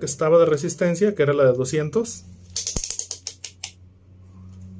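A multimeter's rotary dial clicks as it is turned.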